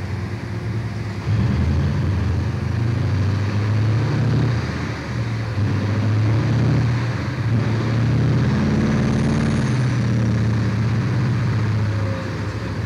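A huge dump truck's diesel engine rumbles loudly and steadily.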